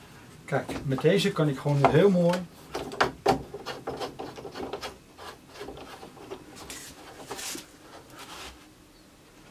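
Wooden parts knock and click close by.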